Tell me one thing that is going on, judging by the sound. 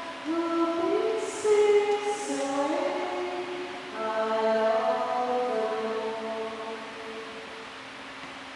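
A man sings a slow chant in a large echoing hall.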